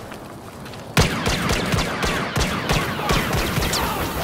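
A laser rifle fires sharp, zapping shots.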